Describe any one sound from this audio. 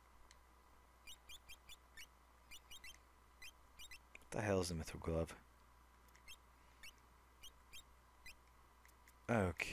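Short electronic beeps tick as a game menu cursor moves.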